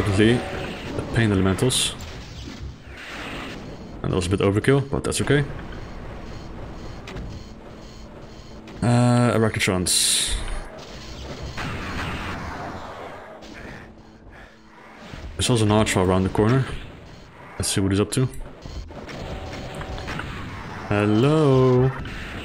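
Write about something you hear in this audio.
Rapid energy gun shots fire and fizz.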